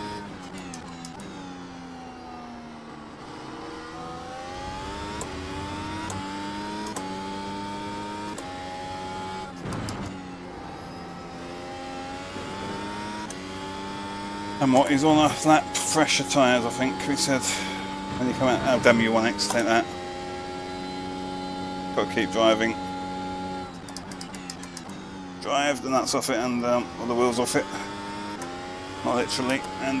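A racing car engine whines, rising and falling in pitch as it shifts gears.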